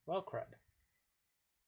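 A man says a few words into a close microphone.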